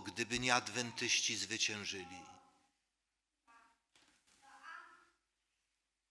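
A middle-aged man speaks calmly and clearly through a microphone in a reverberant hall, pausing between phrases.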